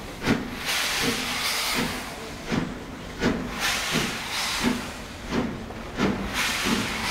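A steam locomotive chuffs in loud, rhythmic bursts as it pulls away.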